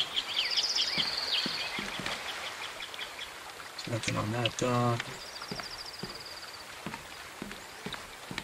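Footsteps thud on wooden boards at a steady pace.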